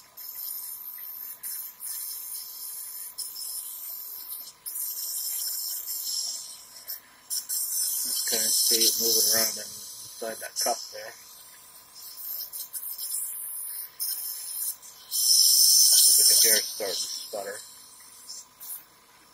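A nebulizer compressor hums steadily nearby.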